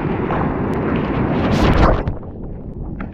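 A wave crashes over a surfboard with a loud roar.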